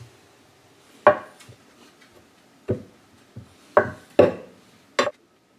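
A knife cuts sausages on a wooden board with soft taps.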